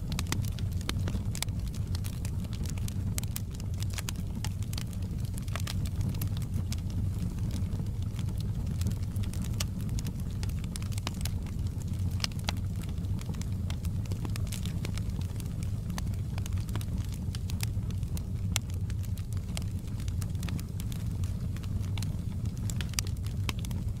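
Flames roar low and steady.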